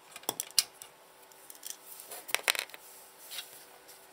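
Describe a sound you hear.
Small metal screws clatter onto a hard counter.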